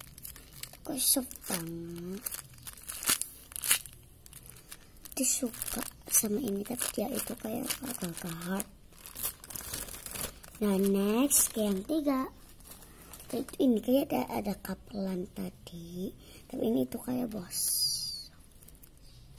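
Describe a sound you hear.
A young girl talks close by, in an animated way.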